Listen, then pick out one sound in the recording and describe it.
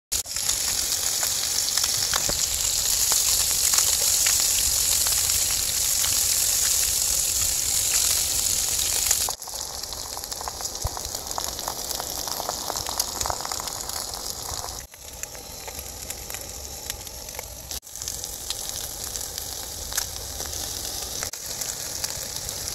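Food sizzles loudly in a frying pan.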